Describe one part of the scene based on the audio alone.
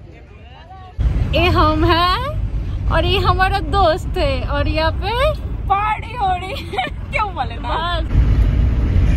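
Young women sing together loudly, close by.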